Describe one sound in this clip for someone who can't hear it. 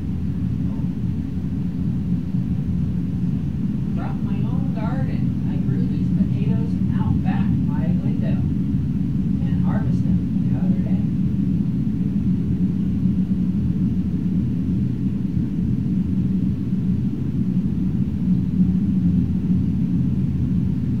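Soft, low ambient music drones steadily.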